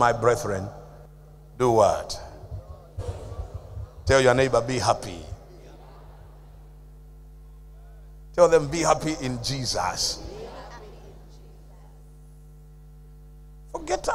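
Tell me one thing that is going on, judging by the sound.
An elderly man preaches with animation through a microphone in an echoing hall, in bursts with pauses.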